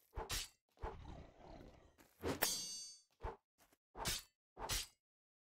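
A sword swishes through the air in quick, repeated swings.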